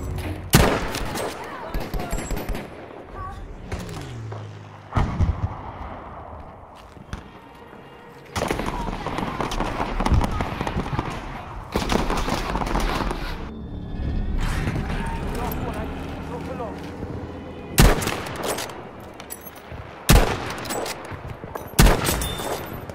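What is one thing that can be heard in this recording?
A rifle fires sharp, loud shots that echo.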